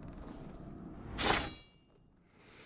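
A sword slides out of its scabbard with a metallic ring.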